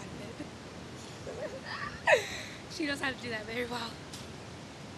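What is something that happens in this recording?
A young woman laughs and talks loudly up close.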